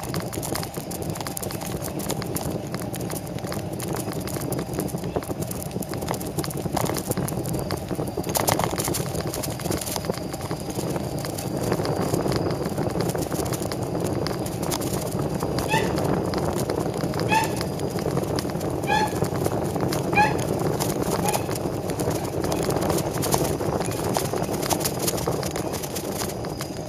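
Wheels roll steadily over asphalt, with a constant rumbling hiss.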